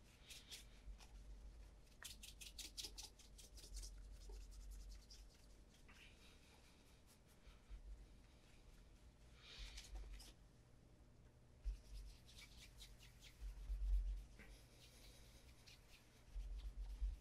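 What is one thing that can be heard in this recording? A cloth rubs briskly against a leather shoe.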